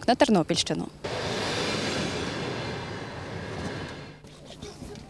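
A passenger train rushes past with a rumbling roar.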